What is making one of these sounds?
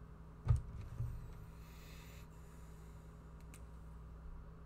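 A metal ruler slides and taps softly on paper.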